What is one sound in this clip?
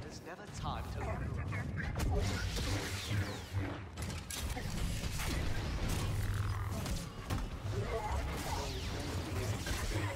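Lightsabers hum and clash in rapid strikes.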